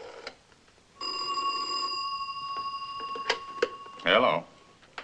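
A telephone tone sounds steadily, then stops.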